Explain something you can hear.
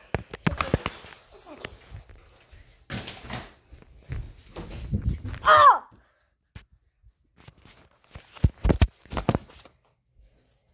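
Clothing rustles and bumps close by.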